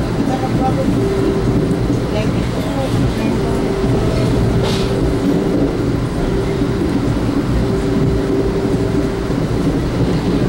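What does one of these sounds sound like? A train's wheels squeal with a high, wavering whine.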